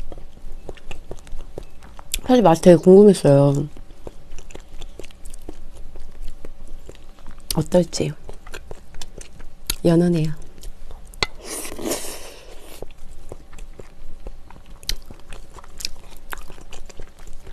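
Chopsticks and a spoon clink against bowls.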